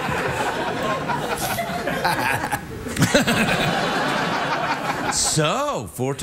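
A second man laughs and chuckles.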